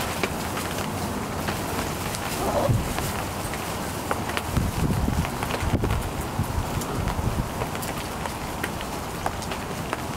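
Puppies rustle and scratch through dry wood shavings.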